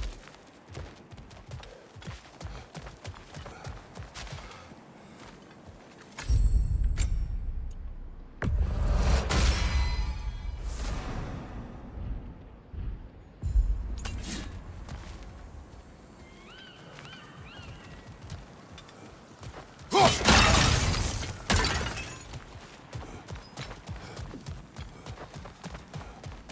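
Heavy footsteps thud on stone and wooden planks.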